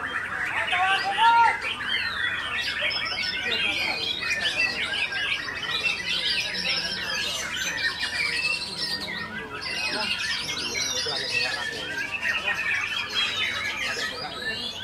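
A songbird sings close by in fast, varied chirps and whistles.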